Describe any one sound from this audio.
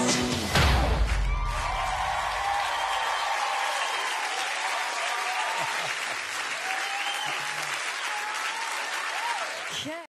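A large crowd cheers, whistles and applauds.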